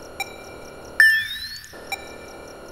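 A computer plays a short chime.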